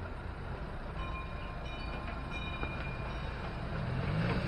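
A small road train's engine hums as it drives along the street.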